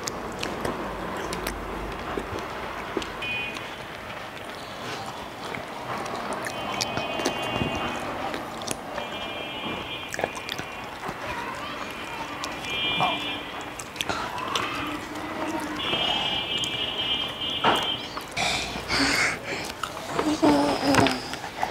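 A man chews crunchy fried pastry close by.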